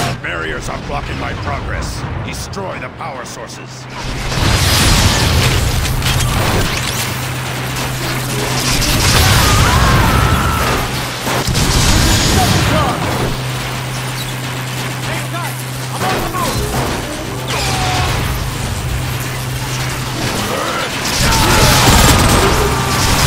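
Energy blasters fire in rapid bursts.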